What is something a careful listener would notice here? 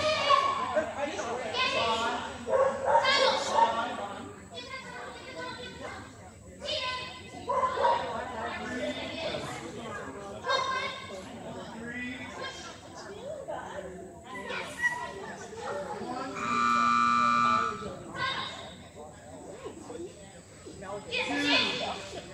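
A woman calls out commands to a dog, echoing in a large hall.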